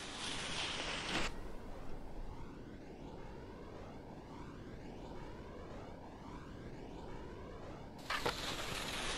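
Wind rushes steadily past a ski jumper in flight.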